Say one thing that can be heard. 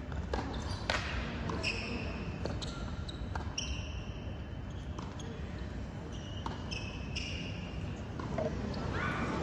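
Tennis balls are struck with sharp pops in a rally.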